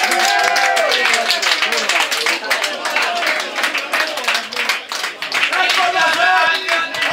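Young men shout and cheer in celebration outdoors.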